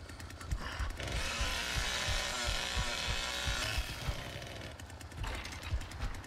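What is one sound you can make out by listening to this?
A chainsaw revs loudly.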